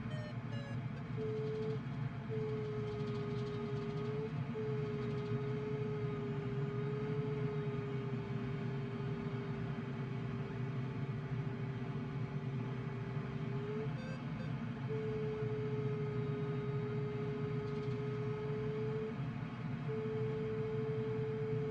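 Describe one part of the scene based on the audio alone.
Air rushes steadily past a glider's canopy in flight.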